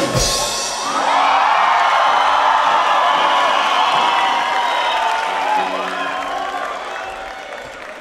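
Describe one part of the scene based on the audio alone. An electric guitar rings out loudly with howling feedback.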